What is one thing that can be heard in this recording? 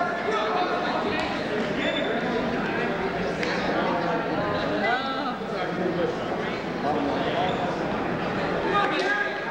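Wrestlers' feet thud and squeak on a mat.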